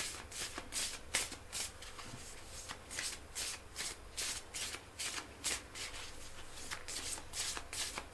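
A man whispers softly, very close to a microphone.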